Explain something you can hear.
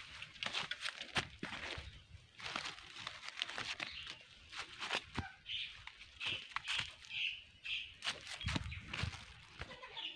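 Footsteps crunch on dry leaves close by.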